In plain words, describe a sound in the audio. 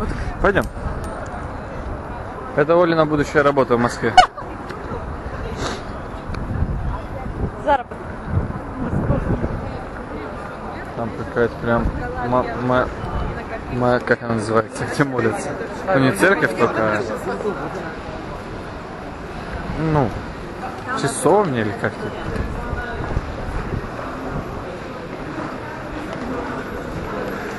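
A crowd of people murmurs in the background outdoors.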